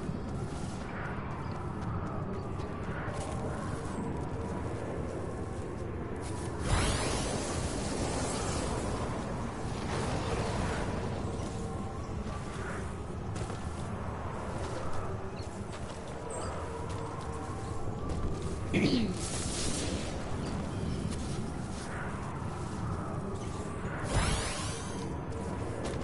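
Footsteps patter on grass as a game character runs.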